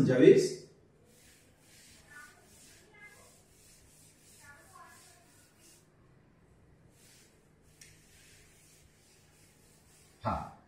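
A cloth duster rubs across a chalkboard.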